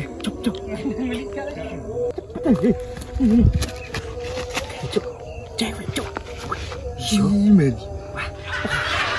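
A young man calls out excitedly close by.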